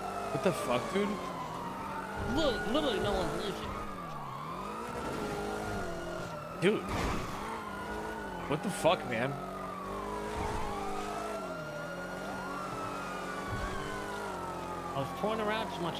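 A police siren wails, rising and falling.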